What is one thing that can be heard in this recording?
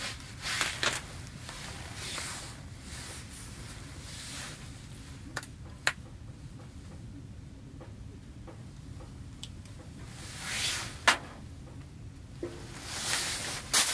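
A knife scrapes scales off a fish in short rasping bursts.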